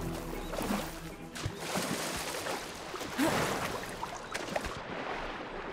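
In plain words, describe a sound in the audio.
Water splashes as a swimmer strokes through choppy waves.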